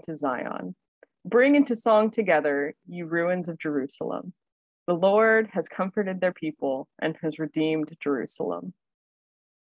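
A woman reads aloud steadily over an online call.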